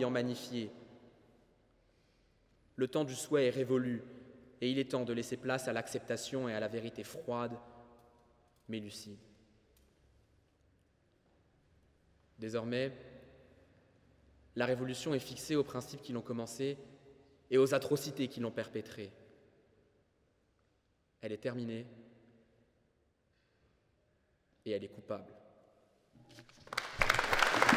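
A young man speaks calmly into a microphone in a large echoing hall, pausing between phrases.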